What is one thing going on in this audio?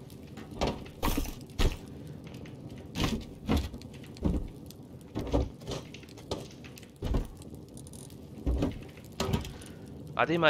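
Short knocks and clicks sound now and then as items are moved about in a game.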